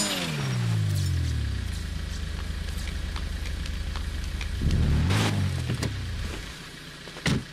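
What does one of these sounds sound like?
A car engine slows and idles low.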